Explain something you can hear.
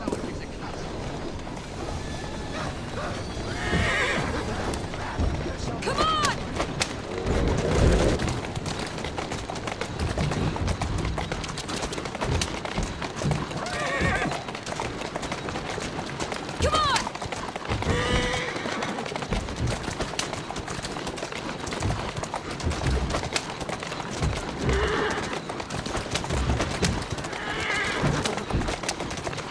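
Horses' hooves clatter on cobblestones.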